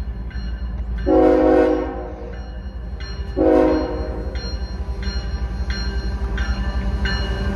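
A freight train's diesel engines rumble as it approaches.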